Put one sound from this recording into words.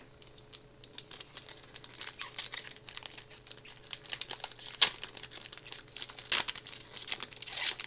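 A foil wrapper crinkles and rustles as hands tear it open.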